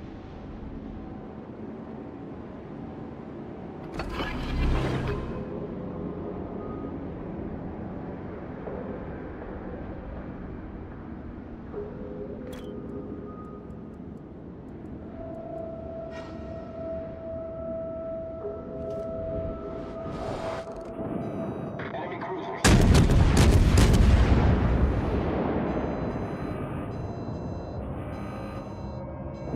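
Water rushes past a ship's hull.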